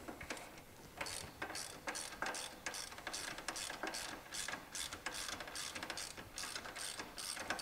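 A ratchet wrench clicks rapidly as it turns.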